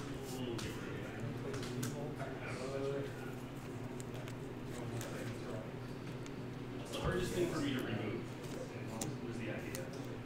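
Playing cards slide and tap softly on a table mat.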